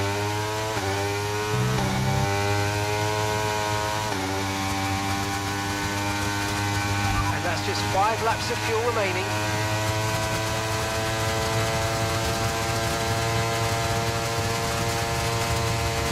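A racing car engine whines at high revs and shifts up through the gears.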